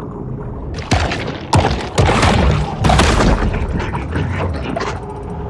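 Water rushes and bubbles in loud bursts underwater.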